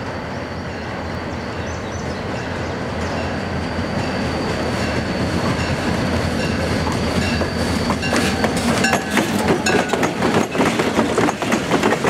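A diesel locomotive engine rumbles, growing louder as it approaches.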